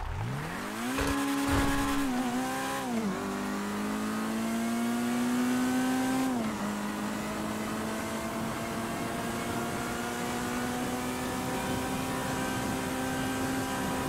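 A car engine roars at high speed, climbing through the gears.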